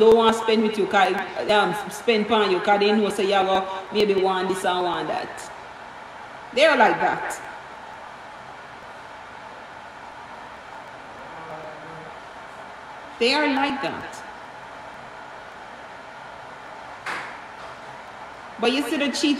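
A woman sings closely into a microphone.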